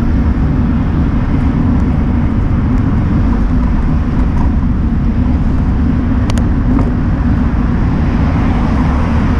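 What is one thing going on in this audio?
Wind rumbles loudly and steadily across a moving microphone outdoors.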